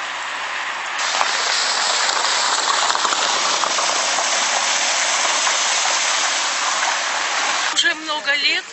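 Car tyres hiss and splash through water on a wet road.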